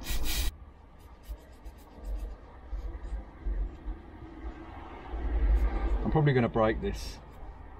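A small brush scrubs briskly against a hard surface.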